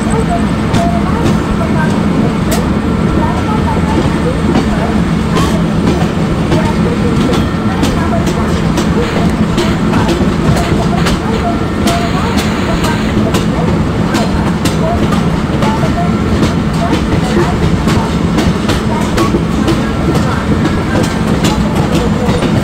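A locomotive engine rumbles steadily.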